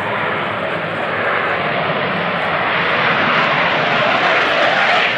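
Small propeller plane engines drone steadily nearby.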